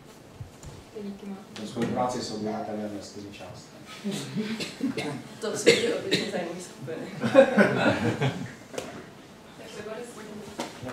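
A young woman speaks calmly, a few steps away.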